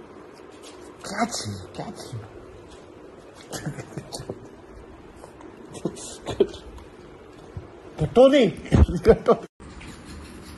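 A young man speaks playfully close to the microphone.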